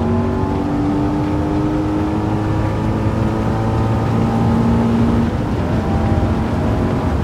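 A V8 sports car engine roars at high revs under full throttle.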